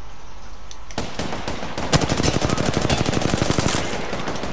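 A rifle fires in a rapid burst of loud shots.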